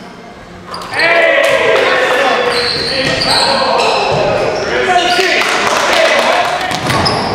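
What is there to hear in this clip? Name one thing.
Young men shout to each other in a large echoing gym.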